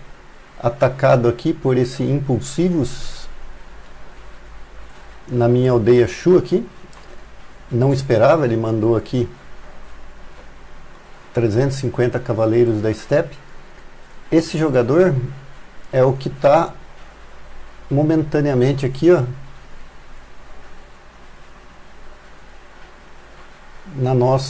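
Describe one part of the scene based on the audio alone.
A middle-aged man talks calmly into a close microphone, in bursts with pauses.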